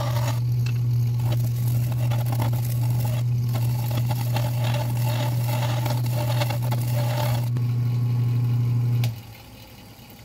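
A wood lathe motor hums steadily, then winds down to a stop.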